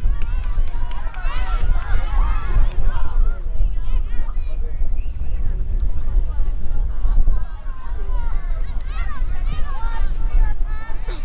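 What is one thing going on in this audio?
Young women nearby shout and cheer excitedly outdoors.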